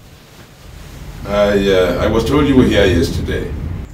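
A man speaks in a quiet room.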